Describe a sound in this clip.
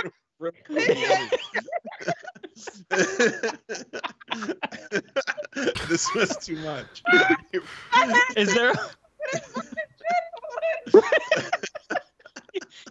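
Several men laugh together over an online call.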